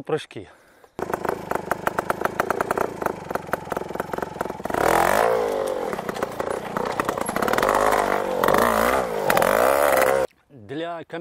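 A trials motorcycle engine revs sharply in bursts.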